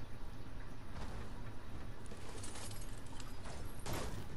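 An ammo box creaks open and rattles.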